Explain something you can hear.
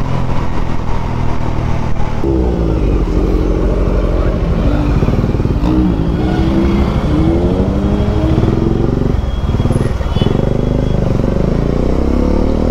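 Traffic rumbles around in heavy congestion.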